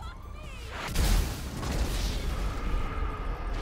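A car explodes with a loud blast.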